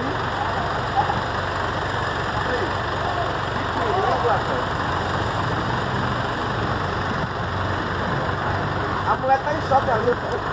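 A diesel city bus idles close by.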